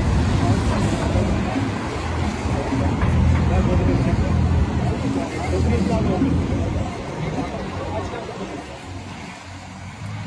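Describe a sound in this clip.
Cars drive past on a wet street, tyres hissing.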